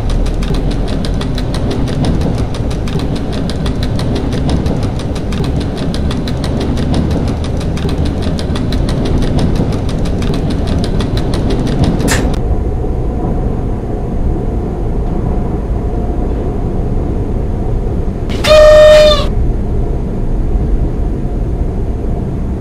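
An electric train rumbles steadily along the rails.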